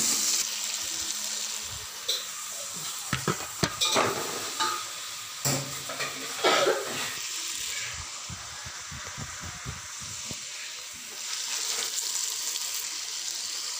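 A wooden spatula scrapes and stirs food in a metal pot.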